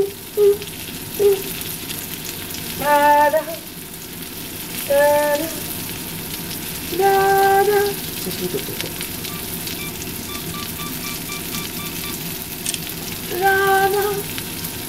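Food sizzles and crackles in a frying pan.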